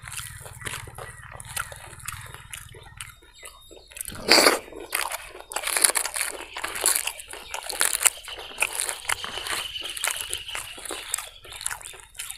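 A man chews food close up with loud, wet smacking sounds.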